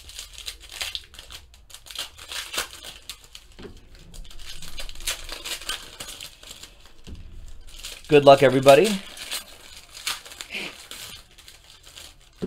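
Foil wrappers crinkle and rustle as they are handled.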